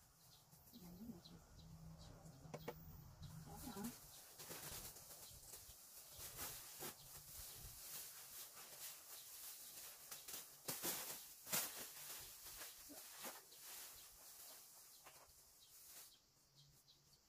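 Paint is brushed onto a siding wall.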